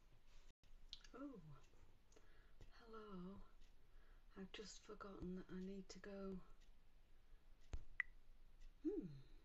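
A middle-aged woman talks calmly and warmly, close to a microphone.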